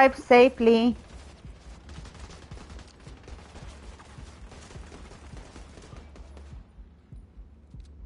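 Gunshots crack in quick bursts nearby.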